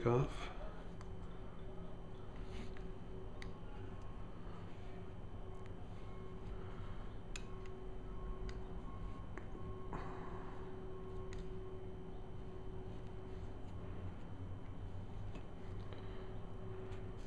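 Small metal tools click and tick faintly against a lens.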